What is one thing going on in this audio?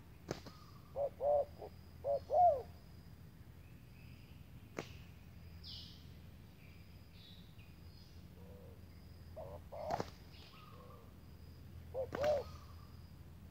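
A chicken clucks and calls nearby, in short bursts.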